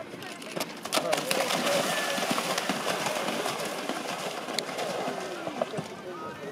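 A horse splashes loudly through water.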